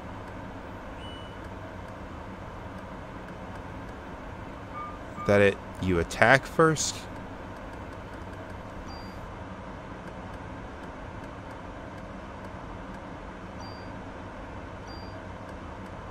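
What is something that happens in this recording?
Short electronic menu blips sound now and then.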